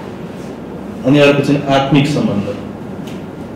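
A young man speaks briefly and calmly into a microphone.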